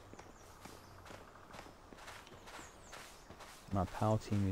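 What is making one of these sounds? Footsteps pad softly on grass.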